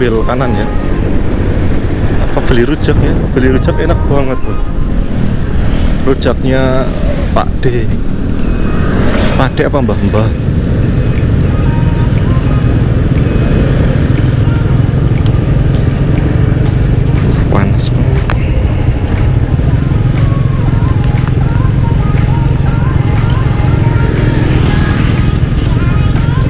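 A motorbike engine hums steadily up close as it rides and then idles.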